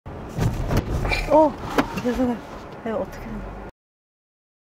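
A man speaks with animation through a microphone, close by.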